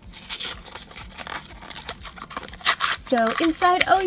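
Paper tears and rustles close up.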